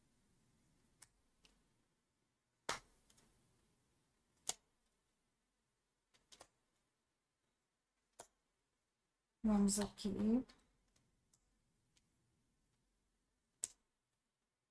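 Playing cards are laid down one by one with soft taps and slaps.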